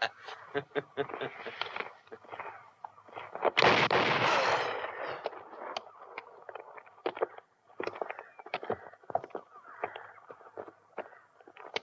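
Horses' hooves clop and thud on dry ground.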